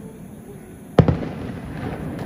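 A firework bursts with a loud bang nearby.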